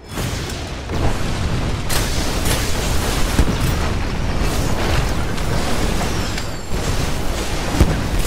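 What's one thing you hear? Explosions boom in a game battle.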